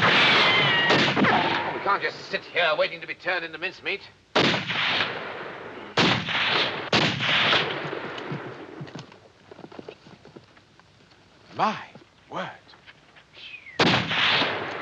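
Gunshots crack and echo among rocks.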